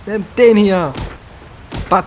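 A heavy kick thuds against a creature.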